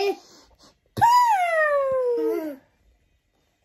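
A young woman cries out in a long, falling squeal.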